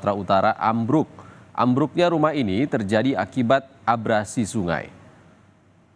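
A man speaks calmly and clearly into a microphone, like a news presenter.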